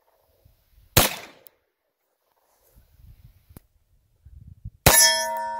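A pistol fires sharp, loud shots that echo across open hills.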